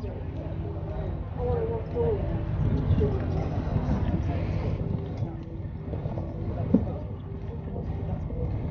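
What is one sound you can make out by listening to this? A horse canters on grass with soft, muffled hoofbeats.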